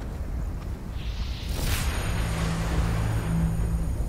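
A magical burst whooshes and shimmers.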